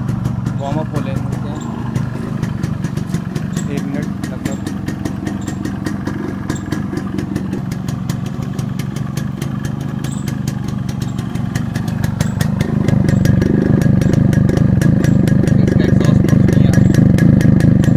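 A two-stroke motorcycle engine idles close by with a rapid popping putter.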